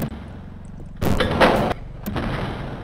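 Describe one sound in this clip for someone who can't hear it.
A heavy sliding door rumbles open.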